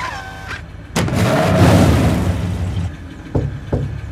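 A truck engine roars and wheels spin.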